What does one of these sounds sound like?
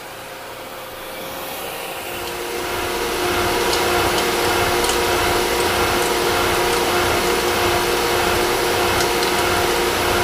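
A milling cutter grinds loudly into metal, growing louder.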